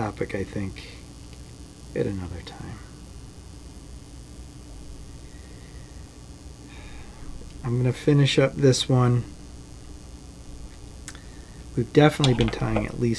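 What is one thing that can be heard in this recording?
A man talks calmly, close to a microphone.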